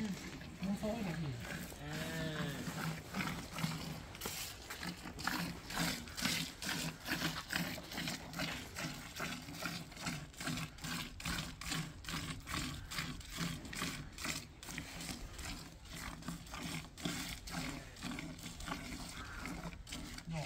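Milk squirts rhythmically into a metal bucket.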